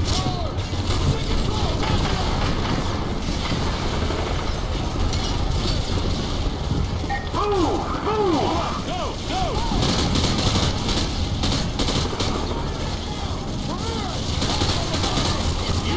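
Rifle fire crackles in rapid bursts.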